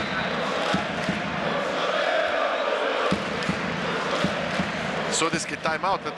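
A crowd claps their hands in rhythm.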